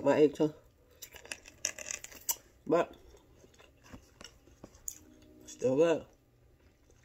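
A woman chews crunchy food close by.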